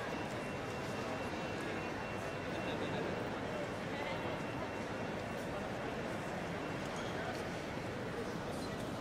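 A crowd murmurs and footsteps echo through a large, echoing hall.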